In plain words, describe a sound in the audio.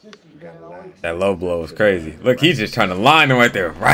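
A young man talks and laughs with animation close to a microphone.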